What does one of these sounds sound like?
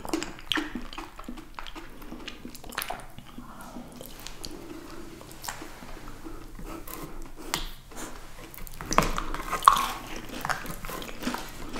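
A metal spoon clinks and scrapes against a dessert cup.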